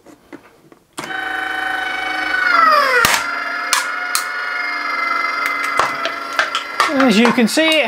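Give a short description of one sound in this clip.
An electric motor whines steadily, its pitch dropping as it strains.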